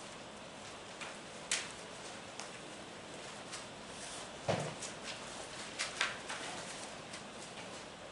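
Paper pages rustle as a book's pages are turned.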